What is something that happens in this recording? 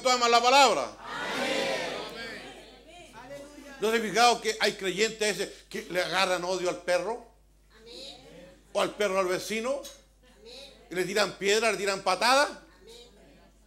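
An elderly man speaks with animation into a microphone.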